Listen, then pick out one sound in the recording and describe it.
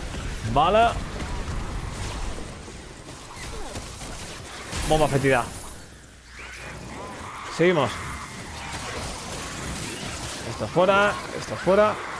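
A blade swings and strikes repeatedly in a game fight.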